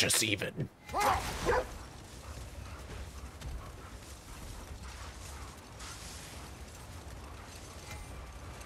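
A sled slides and hisses over snow.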